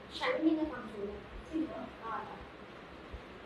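A young woman speaks briefly and calmly nearby.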